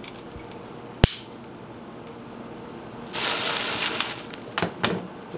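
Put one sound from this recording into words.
A match scrapes and flares up with a brief hiss.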